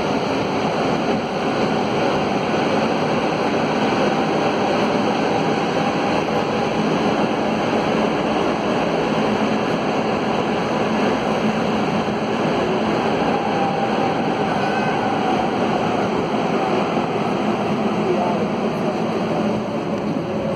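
A subway train rumbles loudly through a tunnel.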